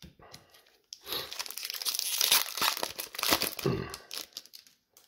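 A foil wrapper crinkles and tears open.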